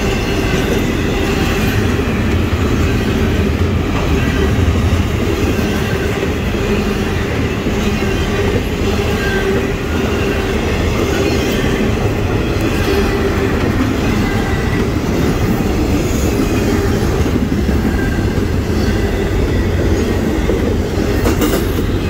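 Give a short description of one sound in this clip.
A crossing bell dings steadily.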